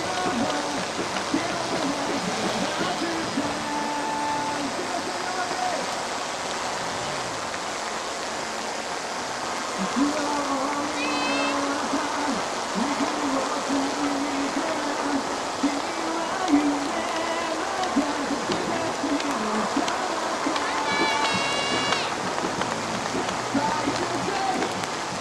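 Women cheer and call out encouragement nearby outdoors.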